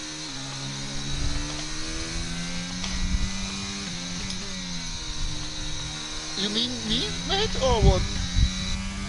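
A racing car engine whines at high revs, shifting gears up and down.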